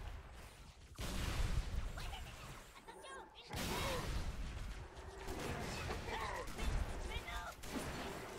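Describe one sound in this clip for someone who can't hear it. Gunfire bursts loudly from a video game.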